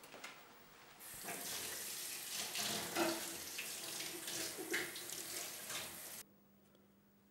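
A woman speaks quietly.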